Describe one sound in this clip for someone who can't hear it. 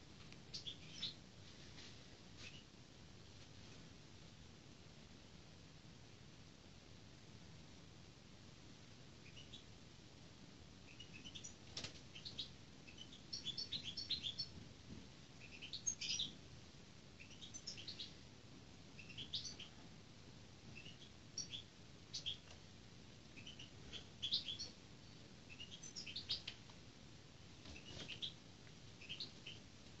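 A hawk gives sharp, high-pitched calls again and again.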